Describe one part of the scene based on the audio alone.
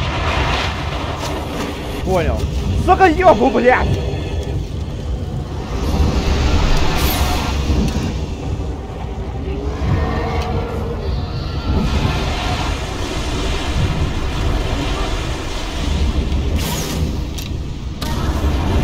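A huge creature growls and roars.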